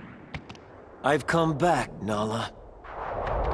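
A man speaks firmly, close up.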